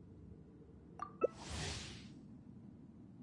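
A short click and a soft whoosh sound as a game menu pops up.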